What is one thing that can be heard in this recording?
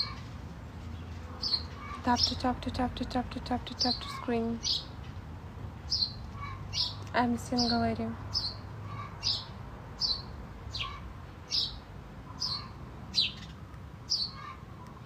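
A young woman speaks softly close to the microphone.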